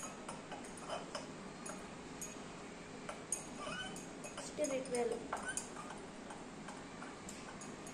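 A spoon clinks against a glass as a girl stirs.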